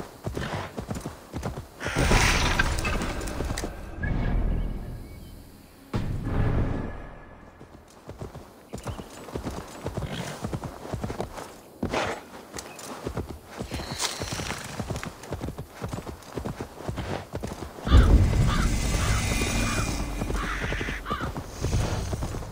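Horse hooves thud steadily on grass.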